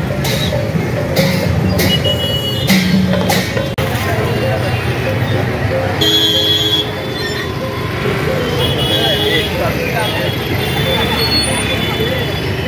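A busy crowd chatters outdoors.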